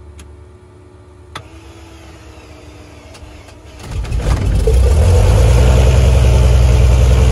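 A small plane's engine hums low, then roars up to full power.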